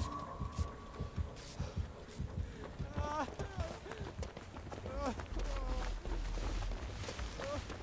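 Footsteps thud quickly over soft ground.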